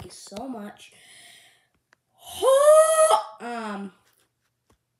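A young boy speaks loudly and playfully, very close to the microphone.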